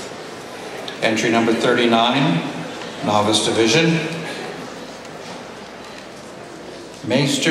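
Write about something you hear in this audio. A man speaks theatrically into a microphone, heard through loudspeakers in a large echoing hall.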